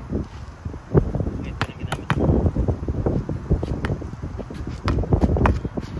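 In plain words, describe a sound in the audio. A ball bounces on hard ground outdoors.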